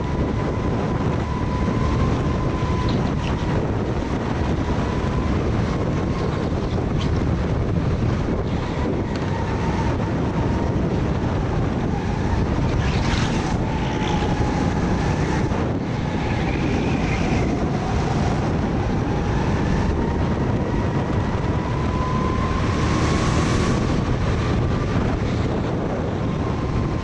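Wind rushes past at speed.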